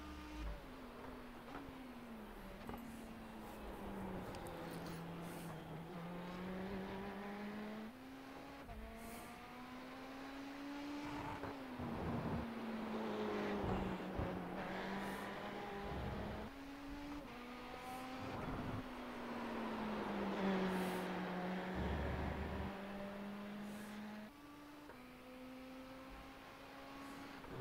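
A racing car engine roars, rising and falling in pitch as the gears shift.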